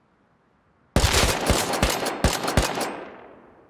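A rifle fires a quick burst of loud shots.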